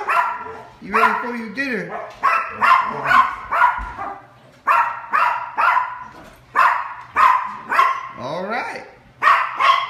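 A dog whines in rising and falling tones.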